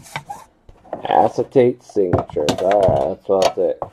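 A metal tin lid clatters against a hard surface.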